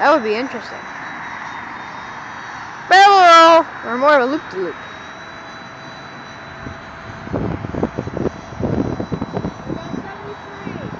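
A model plane's motor whines thinly far overhead.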